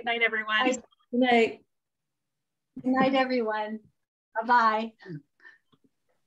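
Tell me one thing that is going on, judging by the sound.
Women say goodbye cheerfully over an online call.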